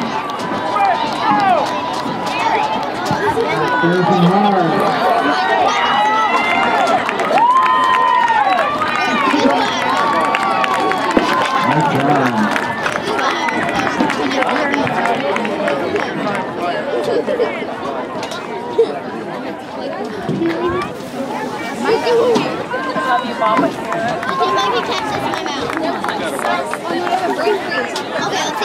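A crowd of children and adults chatters and cheers outdoors.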